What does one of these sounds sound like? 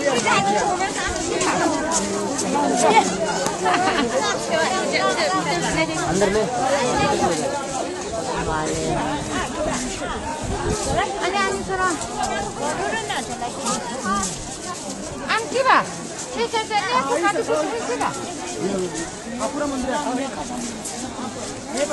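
A crowd of men and women chatter close by outdoors.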